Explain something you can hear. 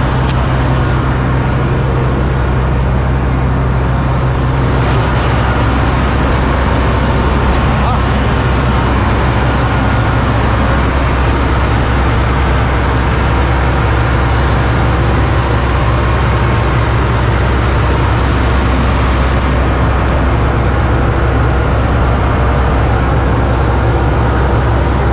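A large engine runs with a steady deep rumble close by.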